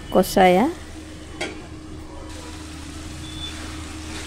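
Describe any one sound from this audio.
A metal lid clinks on a pan.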